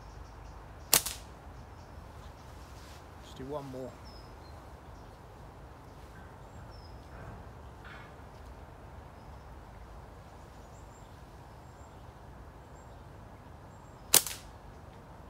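A slingshot band snaps sharply as it is released.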